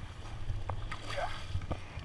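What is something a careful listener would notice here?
A hand splashes in the water.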